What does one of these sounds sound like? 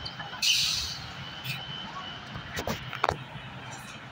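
A bus pulls away with its engine rumbling.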